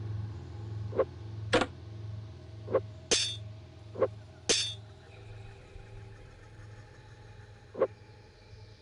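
Items click softly as they are moved around.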